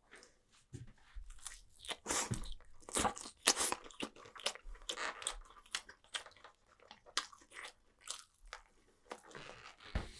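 Chopsticks click against a food tray close to a microphone.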